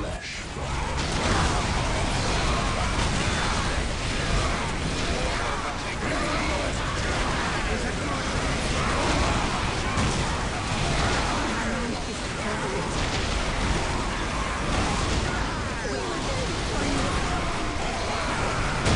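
Gunfire rattles and explosions boom in a dense, chaotic battle.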